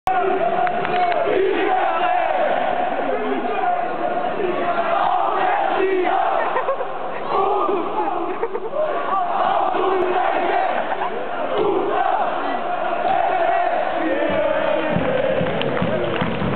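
A large crowd sings and chants loudly in an echoing arena.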